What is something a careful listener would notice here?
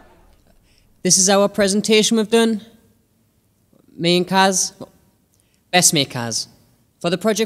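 A young man speaks calmly into a microphone in a room with some echo.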